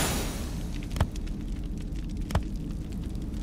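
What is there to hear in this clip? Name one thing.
Short menu clicks sound.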